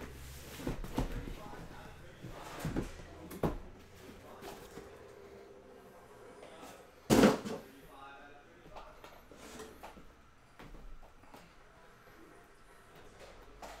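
Cardboard boxes rustle and knock as they are handled.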